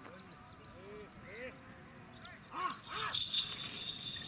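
A man shouts to urge on bulls.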